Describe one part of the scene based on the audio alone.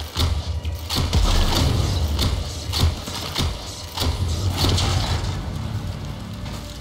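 Explosions burst with a fiery roar.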